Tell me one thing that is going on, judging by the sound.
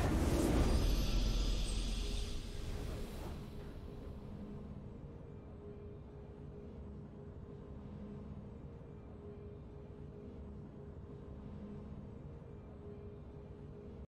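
A victory fanfare swells and rings out.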